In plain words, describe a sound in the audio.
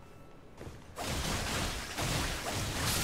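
Flames burst and roar loudly.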